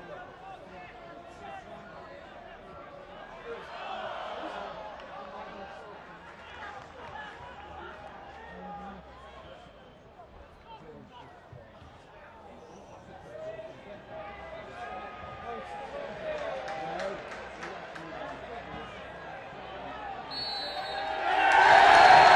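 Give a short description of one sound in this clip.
A football crowd murmurs and chants in an open stadium.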